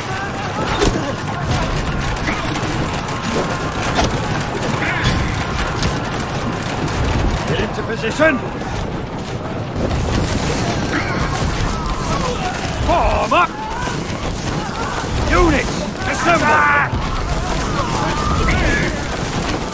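A large crowd of soldiers clamours and shouts in a battle.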